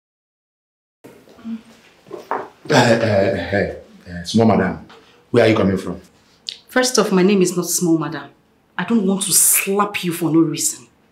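A woman speaks firmly nearby.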